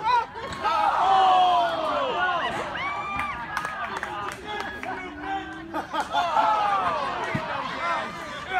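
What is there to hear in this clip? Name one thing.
A crowd of spectators shouts and cheers loudly outdoors.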